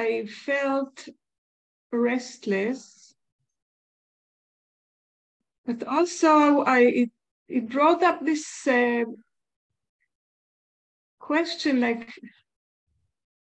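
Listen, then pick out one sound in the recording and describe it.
An older woman speaks calmly over an online call, in short bursts with pauses.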